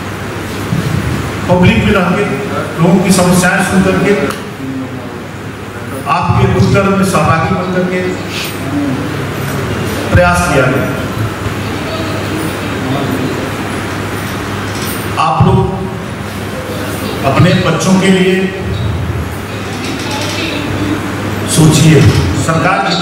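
A middle-aged man speaks firmly into a microphone, heard through a loudspeaker.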